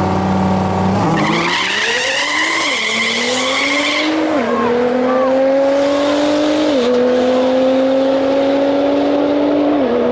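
Race car engines roar and rev up as the cars launch and speed away, shifting gears.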